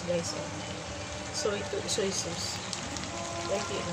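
A spatula scrapes and clicks against a pan.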